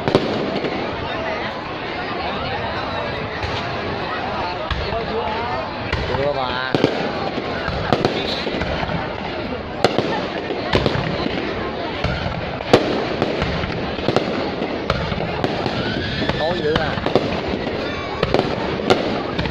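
Fireworks burst with loud bangs and crackles.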